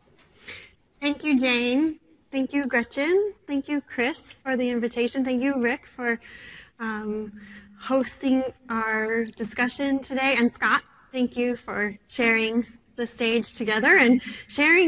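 A middle-aged woman speaks with animation to an audience.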